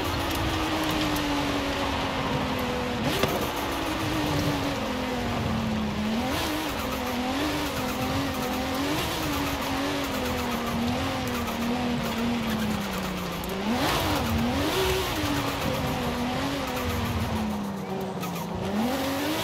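Tyres crunch and skid on a dirt road.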